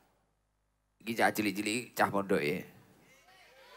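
A young man sings loudly through a microphone and loudspeakers.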